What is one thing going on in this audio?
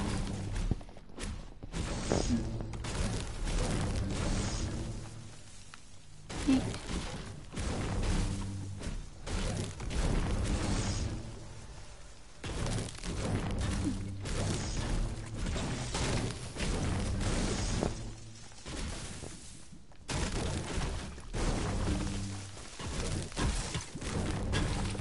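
A pickaxe strikes wood and stone again and again.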